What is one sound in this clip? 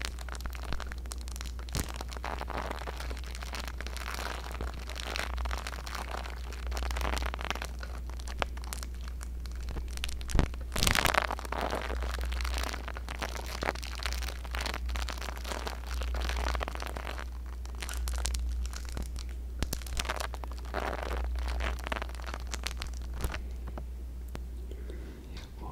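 A brush strokes and scratches against a microphone.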